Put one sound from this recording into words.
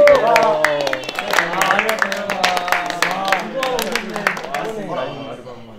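Several young men clap their hands together quickly.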